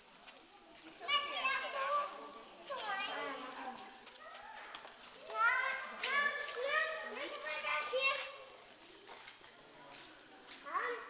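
Young women talk in a large echoing hall.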